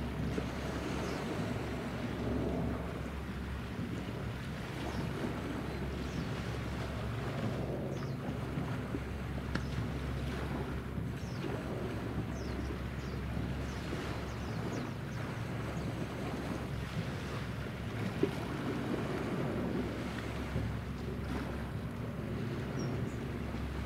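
A small motorboat's engine hums steadily across the water.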